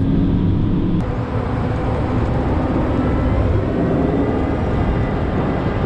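Snow hisses and scrapes under a plough blade.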